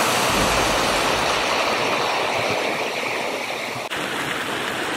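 A mountain stream rushes and splashes over rocks.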